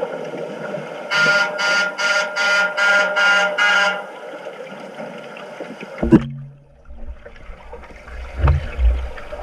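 Water churns and bubbles, heard muffled from underwater.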